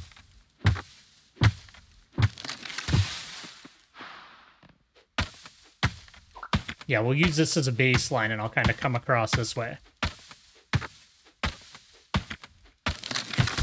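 An axe chops into wood with sharp knocks.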